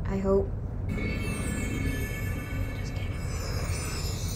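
Magical sparkles chime and shimmer.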